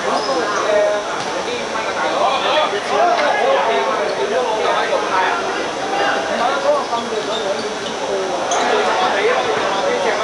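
A football is kicked sharply on a hard court.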